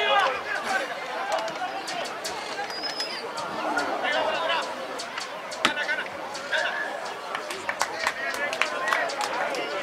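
A crowd murmurs and cheers in the distance outdoors.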